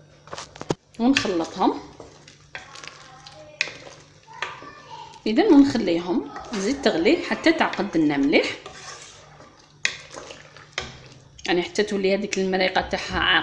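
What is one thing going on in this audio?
A wooden spoon stirs and scrapes inside a pot.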